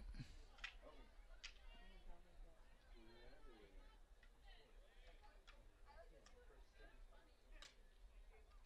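Hockey sticks faintly clack against a ball.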